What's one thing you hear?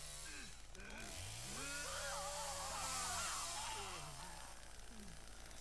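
A man screams wildly.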